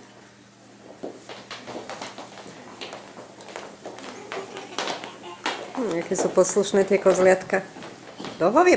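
Young children chatter and shuffle about in a room.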